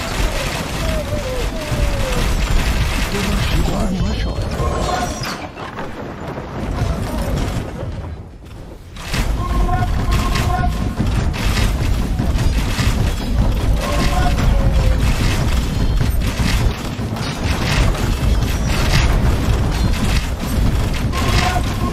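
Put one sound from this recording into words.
Weapons clash and thud in a loud battle.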